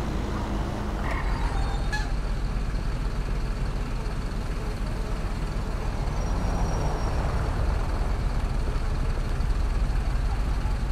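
A bus engine idles with a low rumble.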